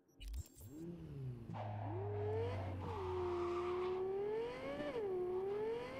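A car engine revs and roars as the car speeds along.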